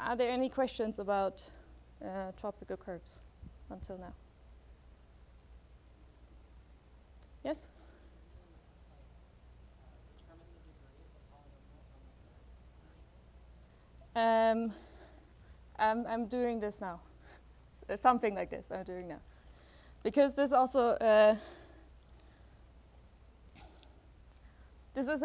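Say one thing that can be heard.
A young woman speaks through a microphone in a large room, pausing between phrases.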